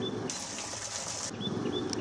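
Water trickles down over rocks.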